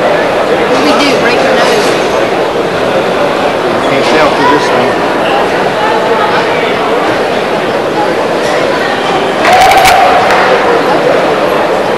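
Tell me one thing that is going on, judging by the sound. Men talk to each other nearby.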